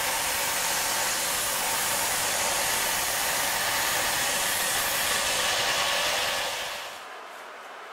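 A power sander grinds loudly against metal.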